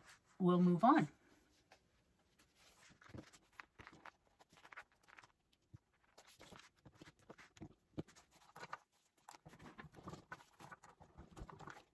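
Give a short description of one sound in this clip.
Leather rustles and taps on a table as it is handled.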